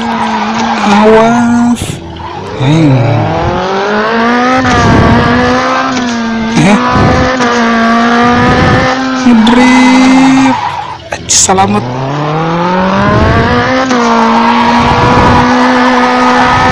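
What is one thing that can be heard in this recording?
A racing car engine revs up and down as the car drifts.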